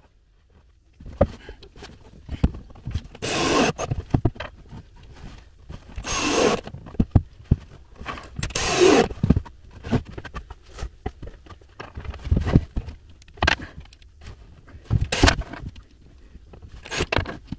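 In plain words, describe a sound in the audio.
Wooden boards knock and clatter close by.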